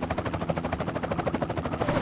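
Rockets whoosh through the air.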